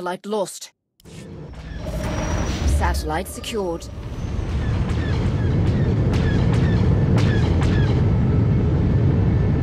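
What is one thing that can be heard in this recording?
A spaceship engine roars steadily.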